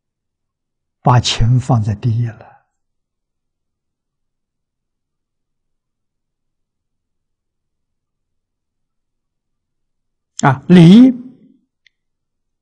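An elderly man speaks calmly and slowly into a close microphone, with long pauses.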